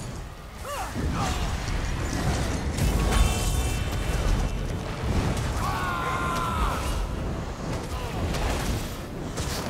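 Weapons clash and thud.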